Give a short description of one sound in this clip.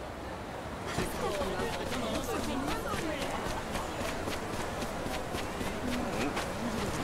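Footsteps walk steadily on a dirt path.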